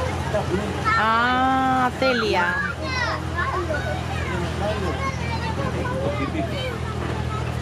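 A vehicle engine hums low and steady.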